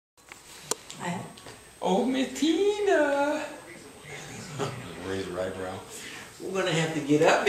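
An elderly woman talks and exclaims nearby.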